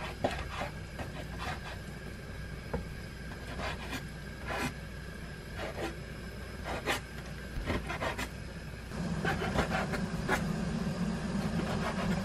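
A knife taps on a wooden cutting board.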